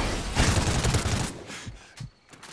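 Gunfire rattles loudly in quick bursts.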